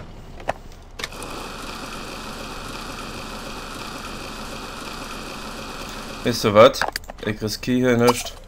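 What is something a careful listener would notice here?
Food sizzles in a pan on a stove.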